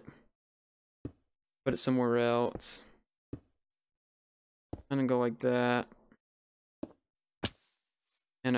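Stone blocks thud as they are placed.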